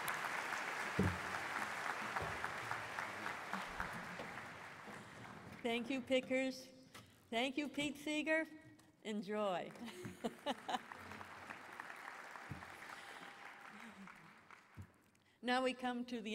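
An audience applauds in a large hall, slowly fading.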